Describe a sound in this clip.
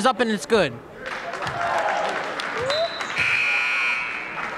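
A crowd cheers and claps after a basket.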